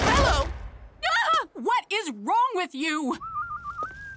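A woman exclaims in a high, animated voice.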